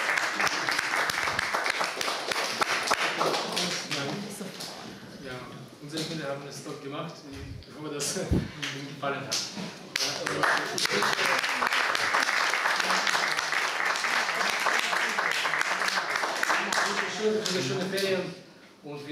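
An audience claps and applauds in a room.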